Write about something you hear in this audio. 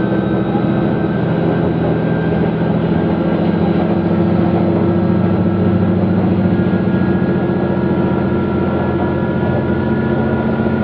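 A diesel railcar drones and rumbles at speed, heard from inside.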